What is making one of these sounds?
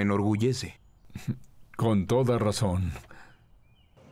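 A younger man laughs and speaks close up.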